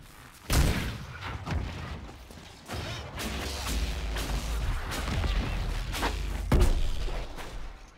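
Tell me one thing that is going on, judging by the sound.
Magic bolts zap and whoosh in sharp bursts.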